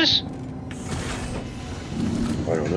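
A heavy metal door slides open with a whoosh.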